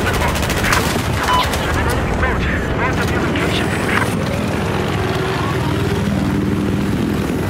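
A helicopter engine and rotor drone steadily throughout.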